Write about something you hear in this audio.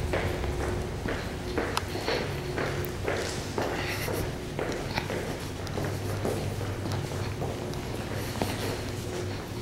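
Footsteps echo on a hard floor in a large echoing hall.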